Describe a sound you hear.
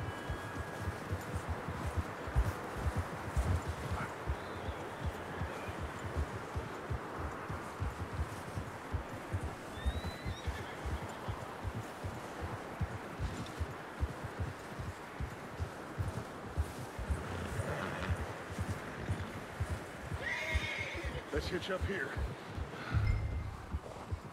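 Horses gallop with quick, muffled hoofbeats on snow.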